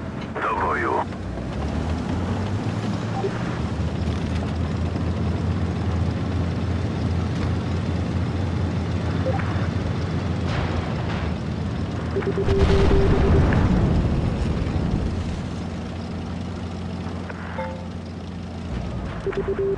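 A heavy tank engine rumbles steadily as the tank drives.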